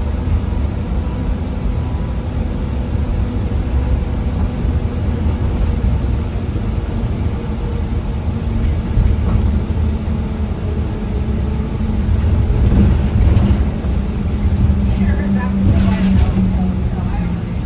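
A bus engine rumbles steadily while driving.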